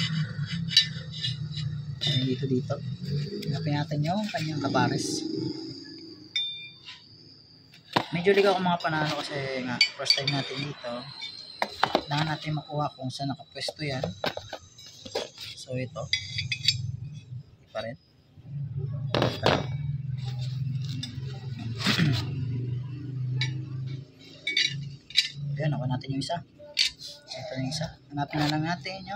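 Metal parts clink and tap against each other close by.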